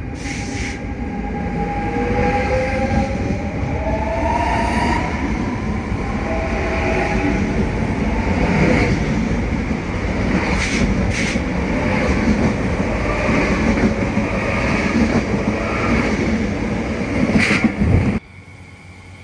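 A train rushes past close by with a loud, rattling roar.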